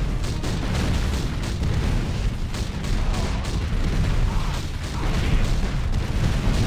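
Gunfire rattles rapidly in a game battle.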